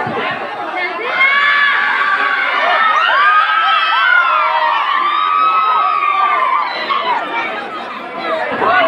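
Children shout and cheer close by.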